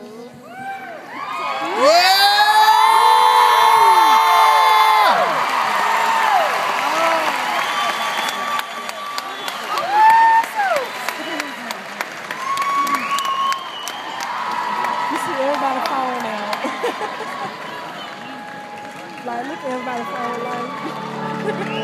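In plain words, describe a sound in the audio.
A woman sings loudly through loudspeakers in a large echoing arena.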